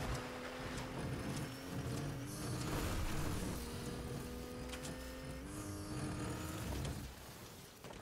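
A car engine hums steadily and shifts pitch as the car drives over rough ground.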